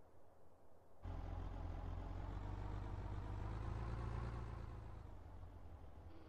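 A car engine hums and revs as a car drives.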